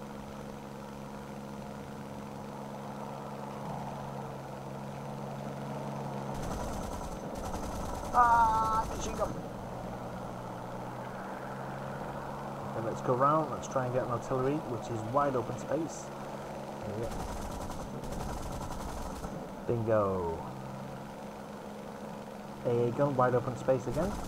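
A plane engine drones steadily.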